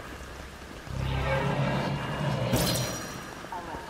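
An electric blast crackles and buzzes.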